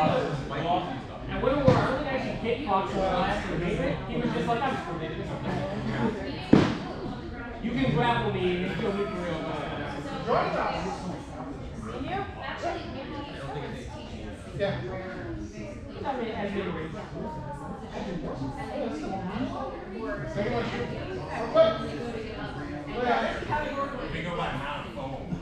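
A man talks calmly nearby in a large echoing hall.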